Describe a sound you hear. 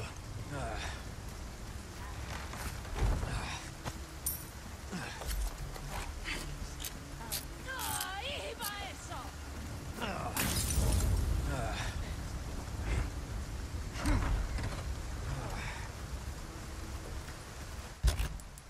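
Footsteps run over dirt and gravel.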